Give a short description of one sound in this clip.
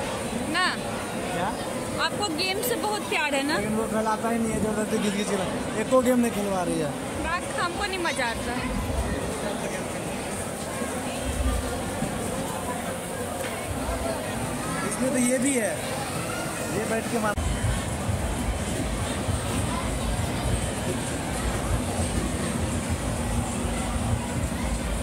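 A crowd chatters in a busy, noisy hall.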